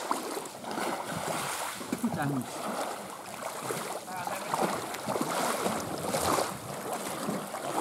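Small waves lap at a shore.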